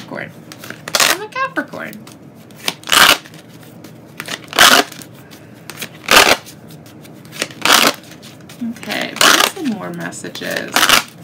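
A deck of cards is shuffled in quick bursts.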